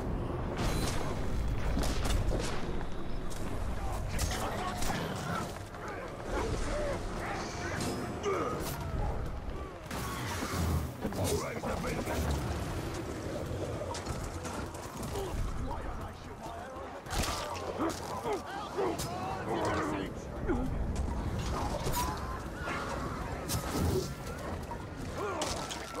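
A large beast snarls and growls.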